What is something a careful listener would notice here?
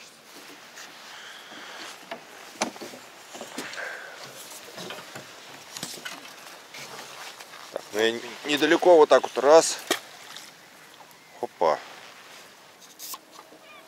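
A fishing reel clicks as line is handled.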